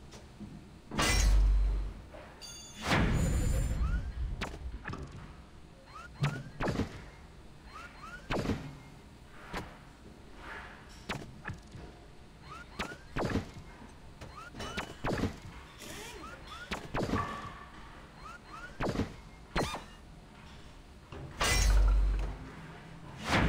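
A game menu makes short whooshes and soft chiming blips as items slot in.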